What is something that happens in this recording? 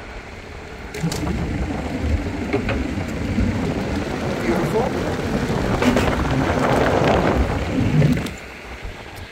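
Skateboard wheels rattle and clack loudly over a wooden bridge deck.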